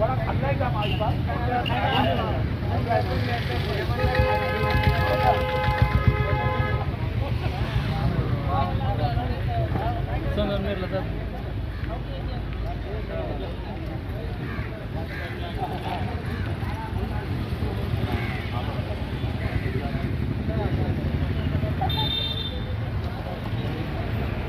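Several men talk over one another outdoors.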